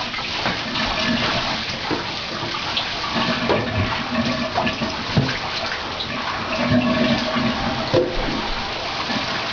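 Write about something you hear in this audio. Water splashes and sloshes in a bathtub as a shower hose sprays.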